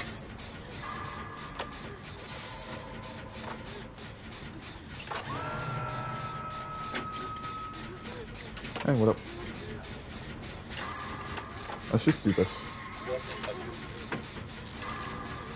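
A machine clanks and rattles as it is repaired.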